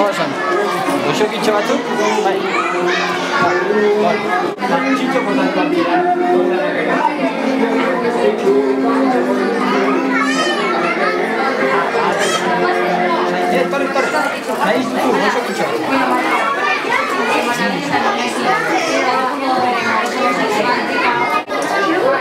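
A crowd of adults and children chatters throughout a room.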